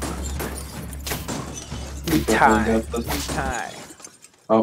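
Cartoon battle sound effects thump and whoosh.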